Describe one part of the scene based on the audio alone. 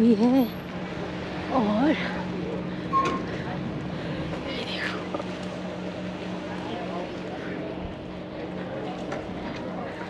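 A woman speaks close by, in a friendly, chatty way.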